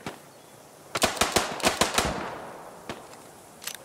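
Rapid revolver shots ring out with a rolling echo.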